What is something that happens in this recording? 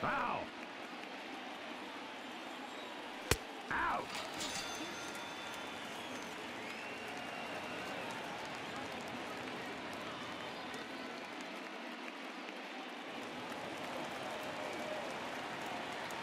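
A stadium crowd murmurs.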